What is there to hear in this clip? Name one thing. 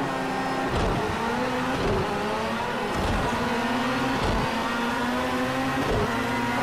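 Gravel sprays and rattles under the tyres.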